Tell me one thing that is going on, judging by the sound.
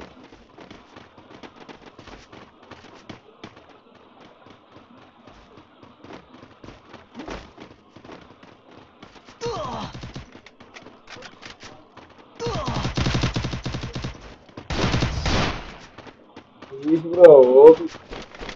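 Footsteps patter quickly across a wooden floor.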